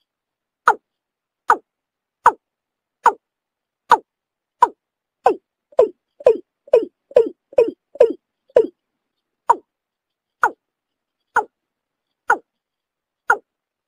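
A bird gives a series of short, loud calls that come quicker in the middle and then slow again.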